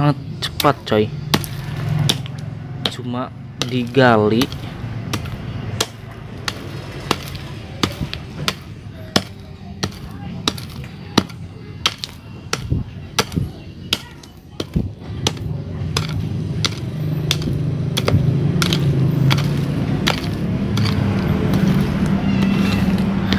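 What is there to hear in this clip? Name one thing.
A hand hoe scrapes and chops into stony soil, with repeated short strikes.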